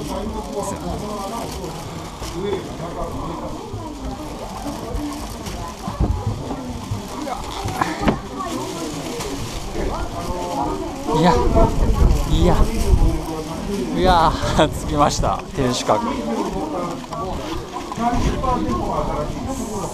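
A crowd of people chatters in an echoing hall.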